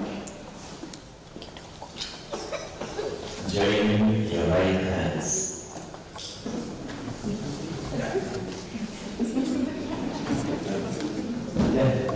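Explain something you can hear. A man speaks calmly through a microphone, heard over loudspeakers in a large room.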